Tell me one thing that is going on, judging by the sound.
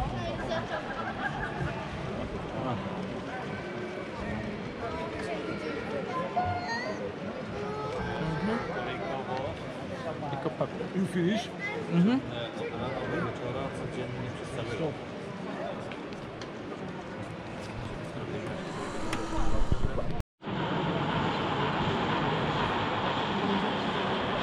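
A crowd chatters and murmurs in a large echoing hall.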